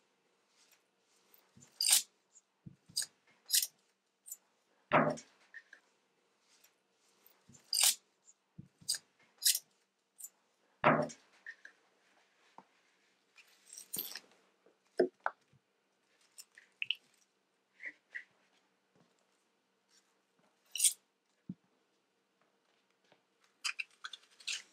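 Onion skin crackles and rustles as hands peel it.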